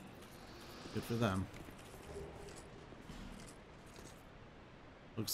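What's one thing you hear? Armoured footsteps tread on stone.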